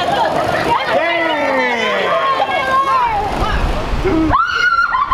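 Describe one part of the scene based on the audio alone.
A woman shrieks in surprise and then laughs.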